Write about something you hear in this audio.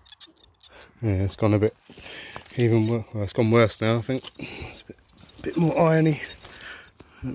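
A metal detector sounds warbling tones.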